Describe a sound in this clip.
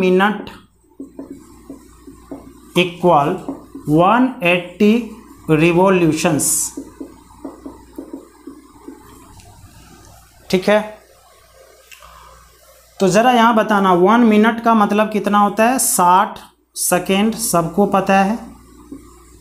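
A young man speaks clearly and calmly, close by.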